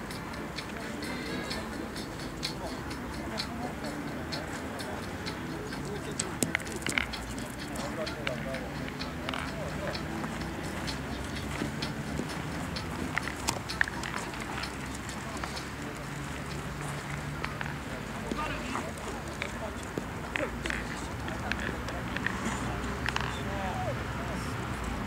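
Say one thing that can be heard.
Men talk casually nearby outdoors.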